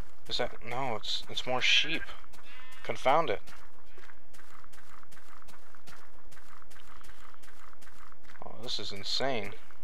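Footsteps tread steadily on grass.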